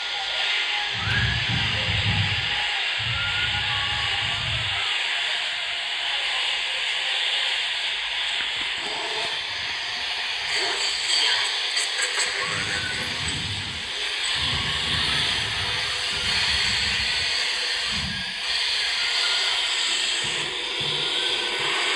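An electric guitar plays low, droning notes.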